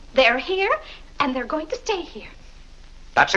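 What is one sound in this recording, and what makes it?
A woman speaks loudly and with excitement.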